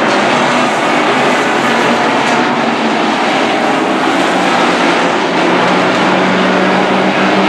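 Several race car engines roar loudly as the cars speed past.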